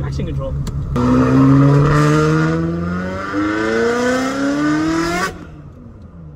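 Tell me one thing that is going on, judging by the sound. A car engine revs hard, rising in pitch through several gear changes.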